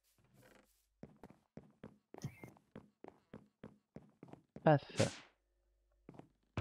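Footsteps tap quickly on wooden boards.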